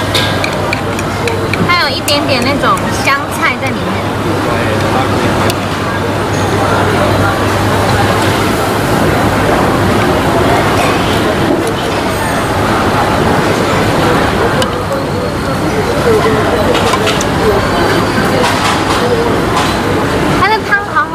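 A young woman slurps soup from a spoon.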